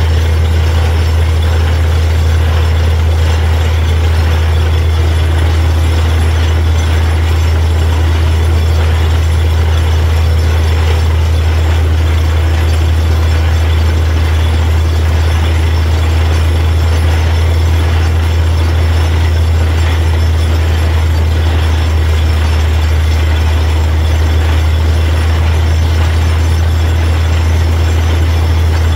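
Water and mud gush and splash from a borehole.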